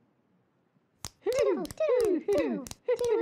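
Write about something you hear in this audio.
Cartoon birds give a series of short, falling squawks.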